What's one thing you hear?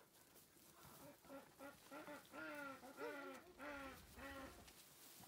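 A young goat bleats loudly and repeatedly nearby.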